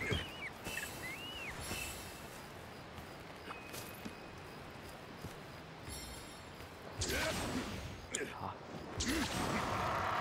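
A sword clangs and whooshes as a game character attacks.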